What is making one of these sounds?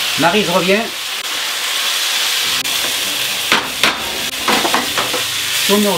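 A spoon scrapes and knocks against a frying pan.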